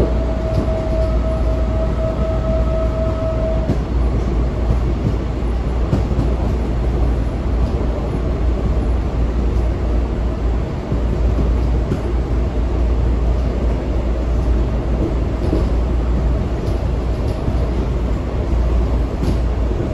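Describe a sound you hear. A train car rumbles and rattles steadily along the tracks.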